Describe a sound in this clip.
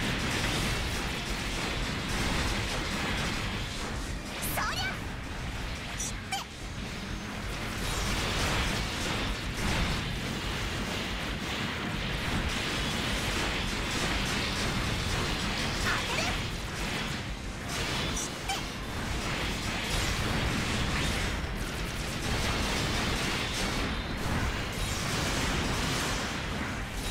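Robots clash with loud metallic blows and blasts.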